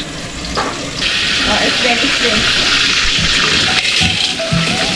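Food sizzles loudly as it is tipped into a hot wok.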